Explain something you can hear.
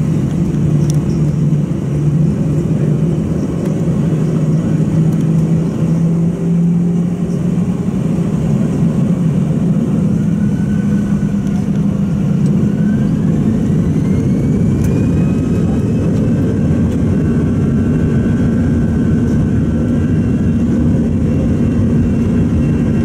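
A jet engine roars loudly and steadily.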